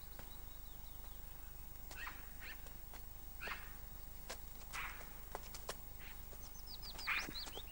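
Footsteps crunch on dry dirt outdoors.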